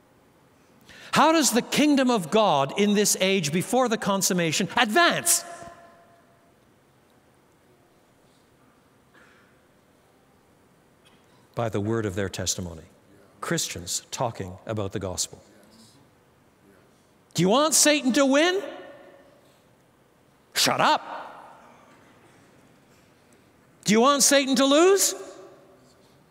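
An elderly man speaks calmly through a microphone in a large, echoing hall, with pauses between phrases.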